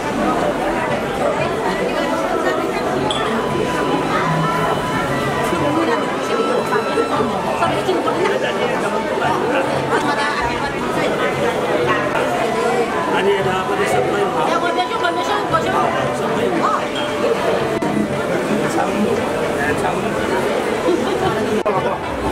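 A crowd of men and women chatters in a busy room.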